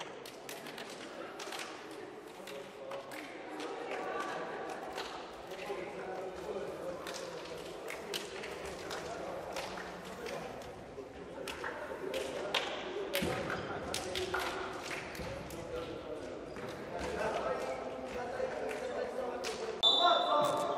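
Hands slap and clap sharply as players greet each other.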